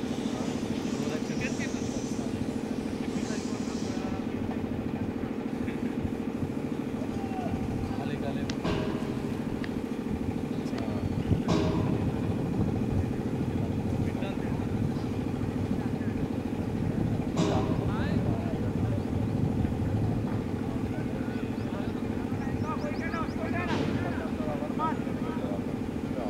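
Several men talk and call out across an open field in the distance.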